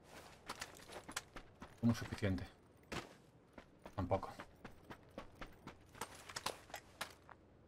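Footsteps crunch on dry dirt and grass.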